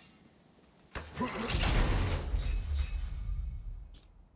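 A heavy chest creaks open with a magical whoosh.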